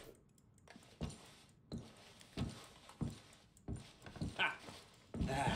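Footsteps thud softly on a floor.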